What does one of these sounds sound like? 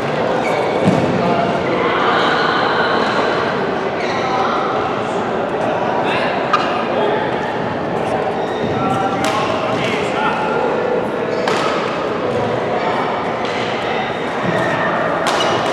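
Shuttlecocks are struck with rackets with sharp pops.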